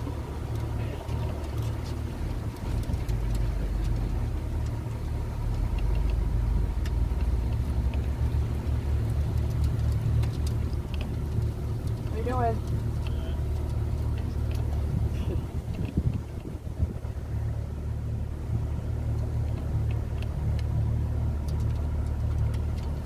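A boat motor hums low and steady.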